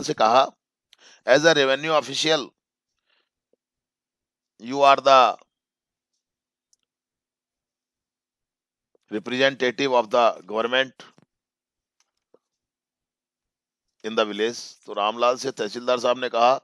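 A young man talks over an online call in short bursts, with pauses between them.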